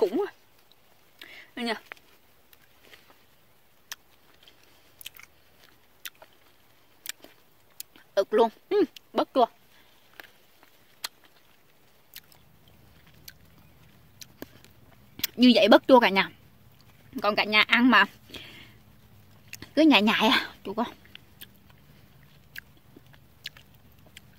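A woman chews and smacks her lips while eating.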